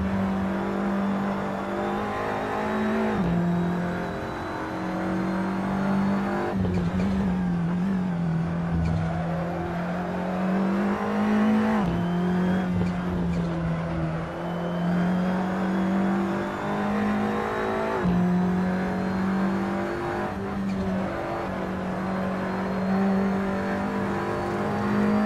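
A race car engine drones loudly throughout, its pitch shifting with each gear change.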